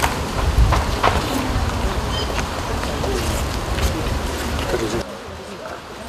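A crowd of men murmurs and talks outdoors.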